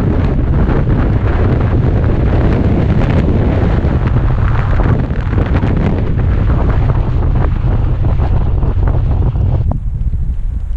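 Wind buffets loudly and steadily.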